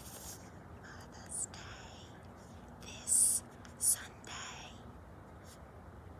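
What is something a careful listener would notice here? A pen scratches on paper in short bursts.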